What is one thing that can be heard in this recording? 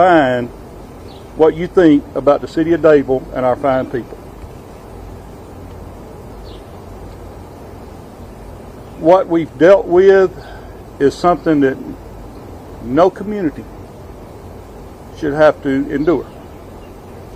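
A middle-aged man speaks calmly into a microphone outdoors, pausing between phrases.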